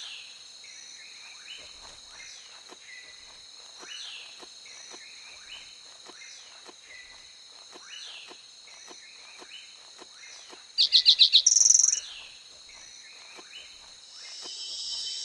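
Heavy paws pad softly over the ground at a steady walking pace.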